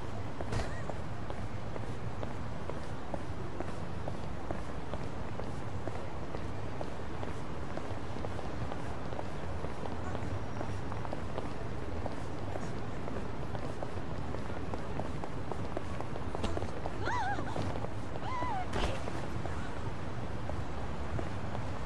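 Footsteps tap steadily on a paved sidewalk.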